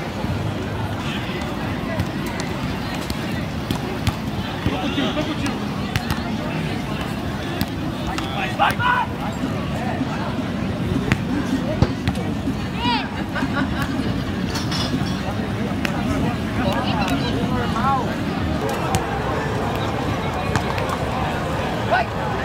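A ball thumps off players' feet and chests now and then.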